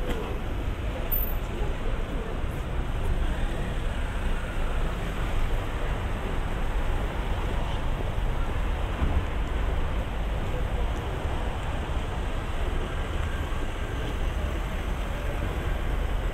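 A steady rumble of traffic fills the air outdoors.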